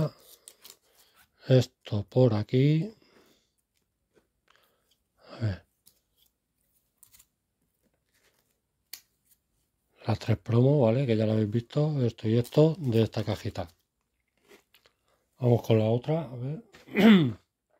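Trading cards slide and tap against each other in someone's hands.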